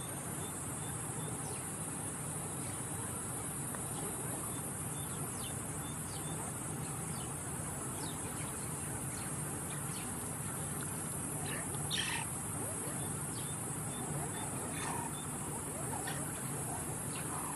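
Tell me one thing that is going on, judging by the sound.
A group of mongooses chirps and squeaks in short high calls.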